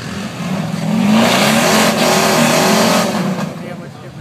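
An engine roars loudly as it revs hard.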